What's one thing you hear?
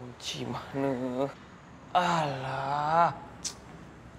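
A young man calls out loudly nearby.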